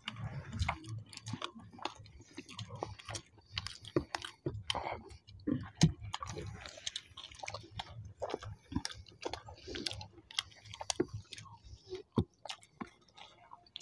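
Fingers squish and tear soft flatbread and wet curry.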